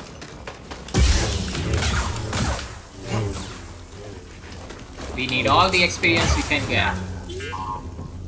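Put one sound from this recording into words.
Energy blades clash and crackle in a fight.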